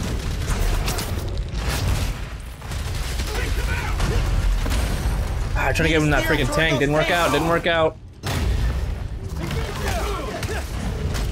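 Punches and thuds of a fight sound in a video game.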